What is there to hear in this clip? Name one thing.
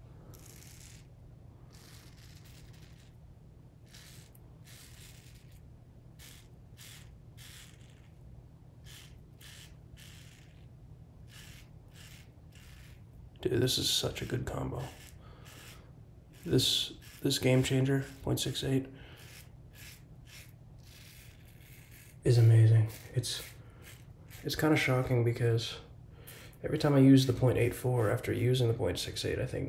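A razor scrapes across stubble in short strokes, close by.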